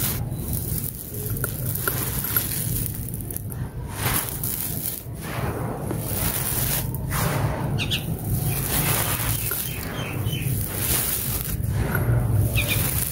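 Gritty dirt with small stones pours from hands and crumbles onto a dirt floor.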